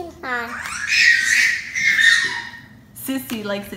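A young child squeals and talks excitedly close by.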